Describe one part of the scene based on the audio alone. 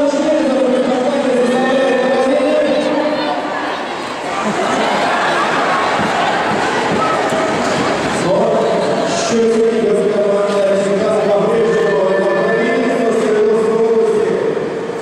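A large crowd chants and cheers in an echoing arena.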